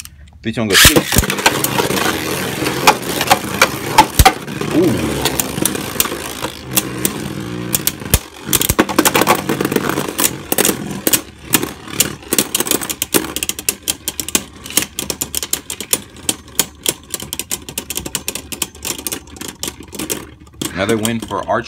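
Spinning tops whir and clatter against each other in a plastic arena.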